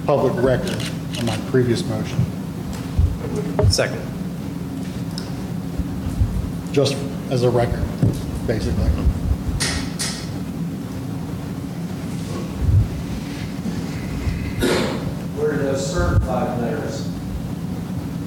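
A man speaks calmly into a microphone in a room with some echo.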